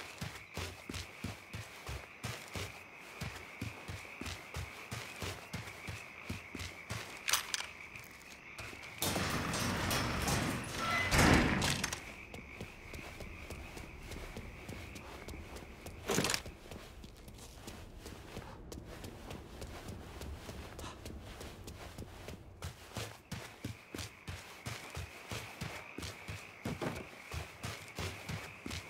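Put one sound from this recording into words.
Footsteps thud quickly on hard ground as a man runs.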